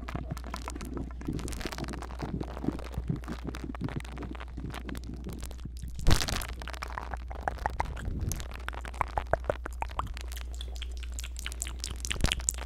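A brush taps and strokes close against a microphone, crackling softly.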